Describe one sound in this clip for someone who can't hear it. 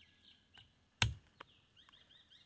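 A blade chops sharply into a wooden block.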